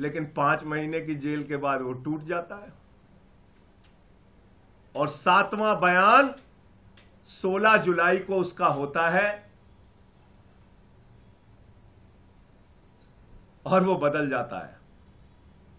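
A middle-aged man speaks emphatically into a microphone, in short bursts with pauses.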